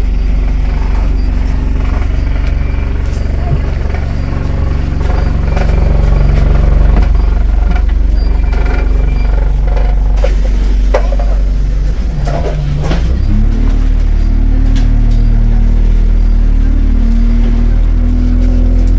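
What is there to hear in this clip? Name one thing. A bus engine rumbles and hums steadily close by.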